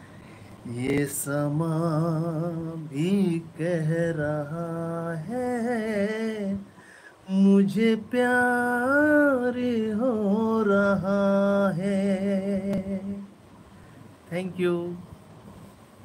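A middle-aged man sings close to the microphone, with long held notes.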